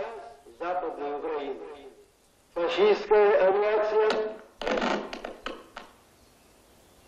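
A man's voice sings loudly through a loudspeaker.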